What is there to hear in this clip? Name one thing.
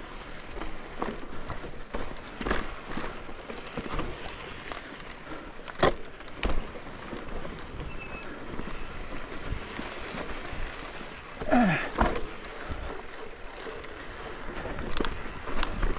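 A bicycle rattles and clunks over rocks and roots.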